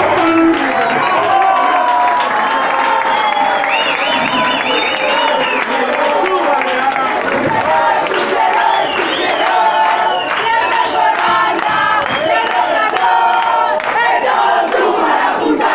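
A crowd of young people cheers and sings along loudly.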